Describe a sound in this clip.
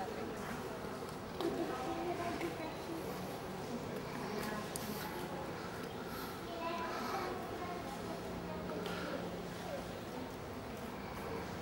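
Footsteps of a woman and a small child tap on stone paving.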